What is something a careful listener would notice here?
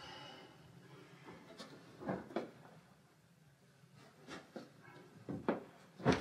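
A man folds and shakes out bedding, the cloth rustling and flapping.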